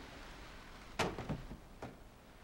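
A heavy wooden crate crashes down with a dull thud.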